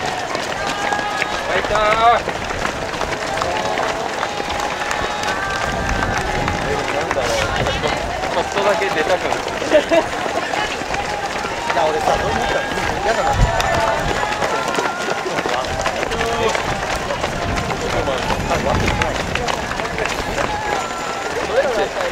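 Many footsteps patter on pavement as a crowd of runners passes close by.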